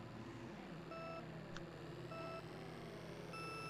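Short electronic countdown beeps sound at an even pace.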